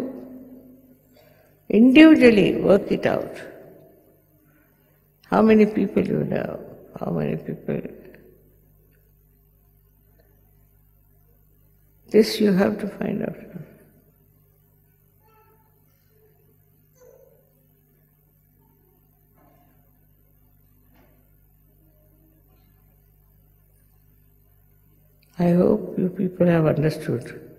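An elderly woman speaks slowly and calmly into a microphone, with long pauses.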